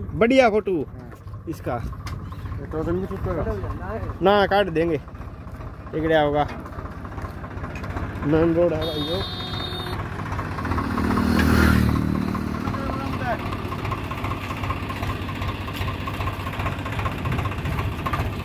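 A tractor engine runs steadily nearby.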